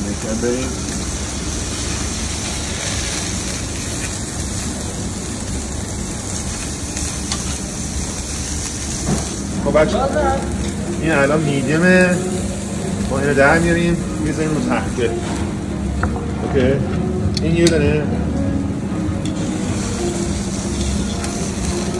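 Flames roar and crackle over a grill.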